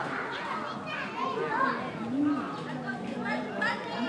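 A chimpanzee hoots and calls loudly.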